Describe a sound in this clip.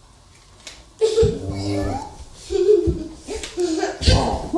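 A young child shouts and squeals playfully nearby.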